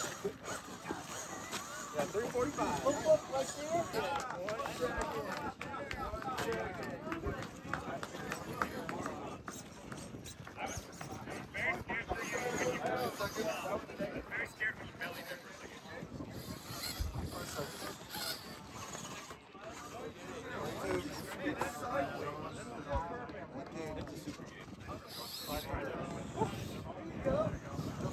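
Men talk casually nearby, outdoors.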